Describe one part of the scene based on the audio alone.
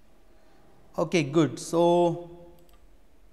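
A man speaks briefly into a close microphone.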